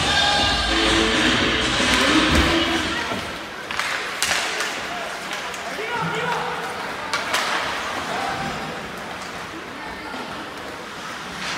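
Spectators chatter nearby.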